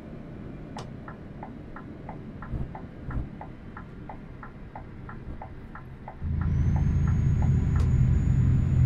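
A turn signal ticks at a steady pace.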